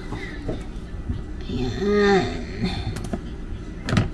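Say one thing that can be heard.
A plastic latch clicks open.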